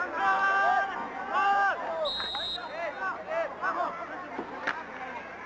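Young men shout loudly outdoors.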